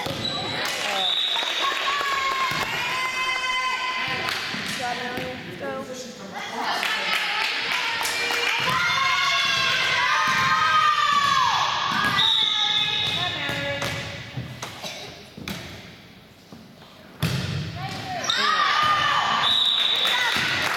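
A referee blows a whistle in a large echoing gym.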